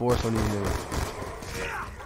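A pistol fires a shot.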